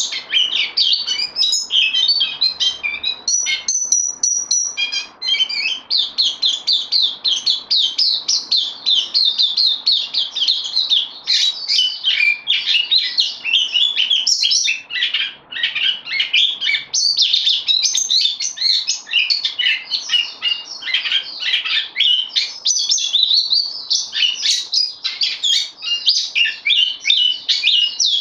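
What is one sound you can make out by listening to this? A small songbird sings a fast, rich, warbling song close by without pause.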